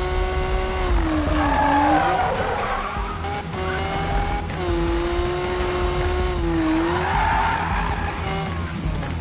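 Tyres screech through a sharp turn.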